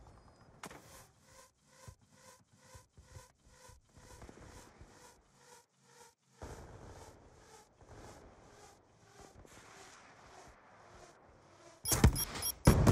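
A missile roars as it streaks downward.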